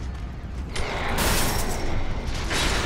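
A heavy metal chain rattles and snaps.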